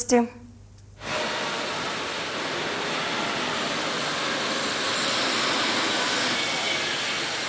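Steady machinery noise hums through a large echoing factory hall.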